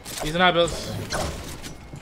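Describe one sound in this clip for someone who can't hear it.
A pickaxe swings and strikes with a sharp thwack.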